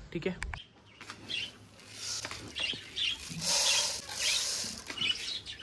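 Seeds rustle and hiss as a hand stirs them in a plastic bowl.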